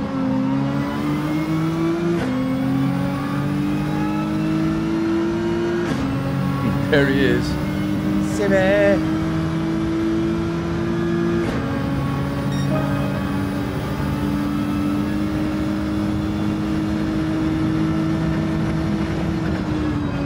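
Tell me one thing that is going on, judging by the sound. A racing car engine revs high and climbs through the gears with sharp shifts.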